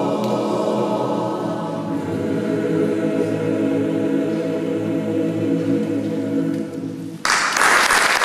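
A mixed choir sings a held chord in a large echoing church.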